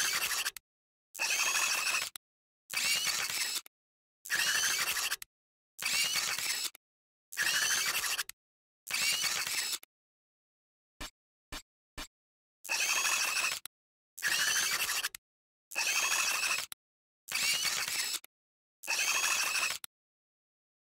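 A video game menu plays a crafting sound effect over and over.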